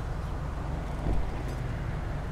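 A car door opens with a thud.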